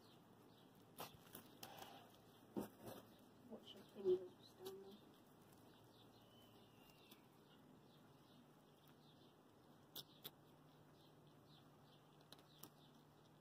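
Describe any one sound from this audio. Small paws patter and crunch on loose gravel.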